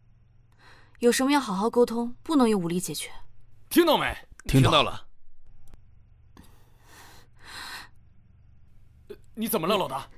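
A young woman speaks calmly and firmly, close by.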